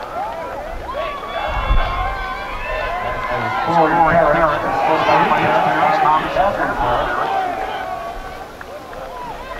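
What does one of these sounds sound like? A crowd of young people chatters and cheers outdoors.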